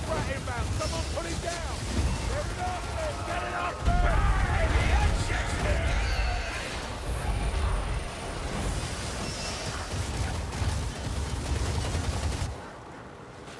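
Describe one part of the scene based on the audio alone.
A blade swings and slashes through the air.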